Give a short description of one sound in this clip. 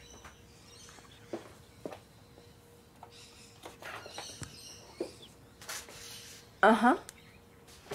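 A young woman speaks calmly on a phone.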